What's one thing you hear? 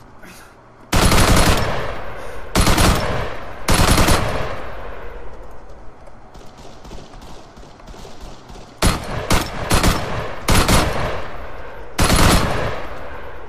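Rifle shots crack and echo over open hills.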